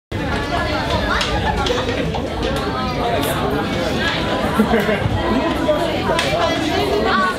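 A crowd of young men and women chatter and call out in a large room.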